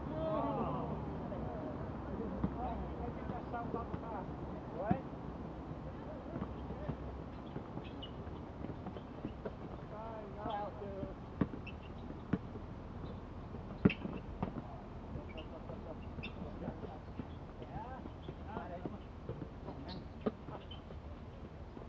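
Young men shout and call out to each other at a distance.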